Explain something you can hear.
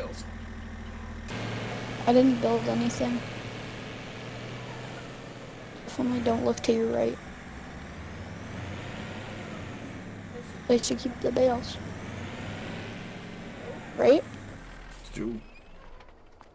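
A diesel pickup truck engine idles and revs.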